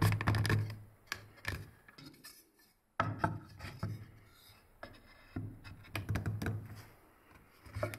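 Wooden boards knock and scrape against a table.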